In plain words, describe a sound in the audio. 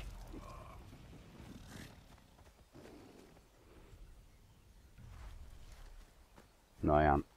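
Footsteps rustle quickly through dry grass.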